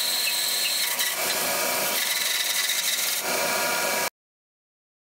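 A band saw whines steadily as it cuts through wood.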